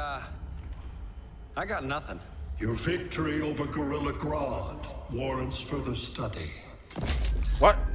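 A man speaks calmly and hesitantly.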